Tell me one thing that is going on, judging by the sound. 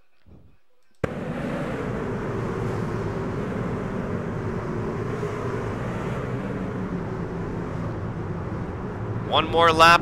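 Race car engines roar loudly as cars speed around a track.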